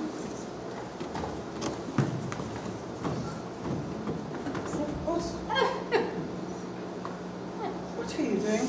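Two young women talk with animation nearby.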